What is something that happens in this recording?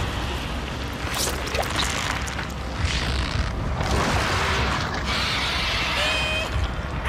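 Slimy tentacles writhe and squelch.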